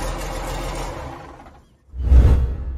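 An engine runs with a low steady rumble, then winds down.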